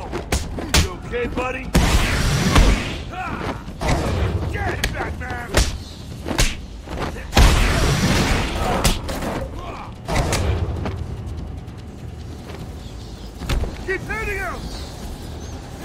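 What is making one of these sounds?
Men grunt and cry out in pain.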